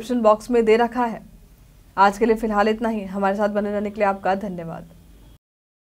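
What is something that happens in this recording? A young woman speaks clearly into a microphone, reading out.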